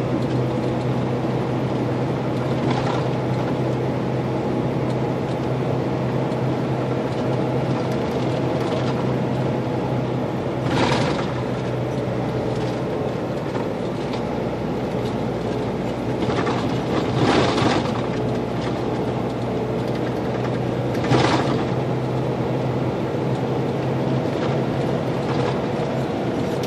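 A large vehicle's engine hums steadily from inside the cab.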